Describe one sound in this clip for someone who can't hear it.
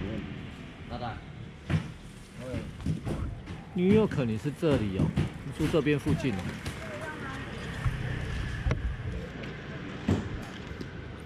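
Plastic baskets and tubs knock and clatter.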